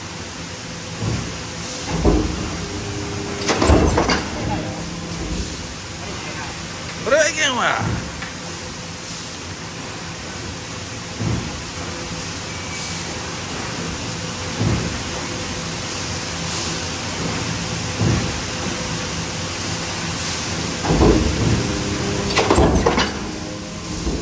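A large stamping press thuds heavily again and again.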